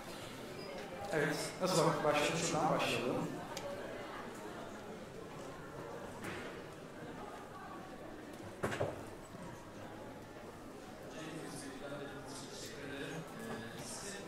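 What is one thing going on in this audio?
A man speaks through a microphone into an echoing hall.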